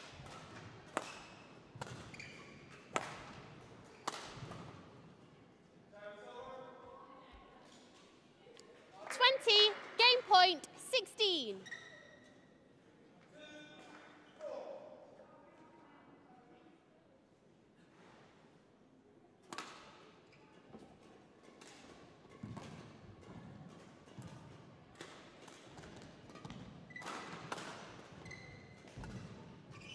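Rackets strike a shuttlecock back and forth with sharp pops in a large echoing hall.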